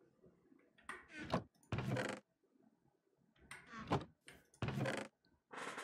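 A wooden chest creaks open and shut.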